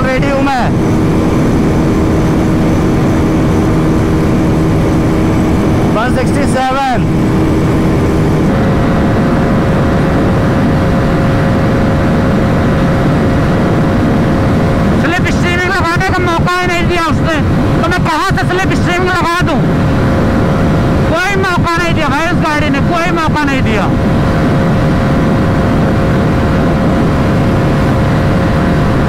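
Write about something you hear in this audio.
A motorcycle engine hums steadily at high speed.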